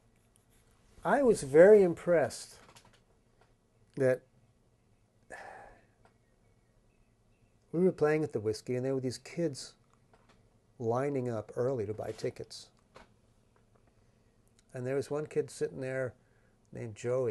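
A middle-aged man speaks calmly and thoughtfully into a close microphone, with pauses.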